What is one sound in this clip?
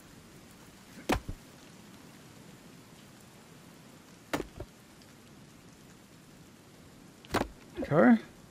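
An axe chops into wood with sharp thuds.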